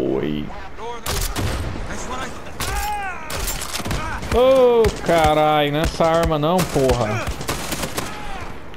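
A machine gun fires loud bursts.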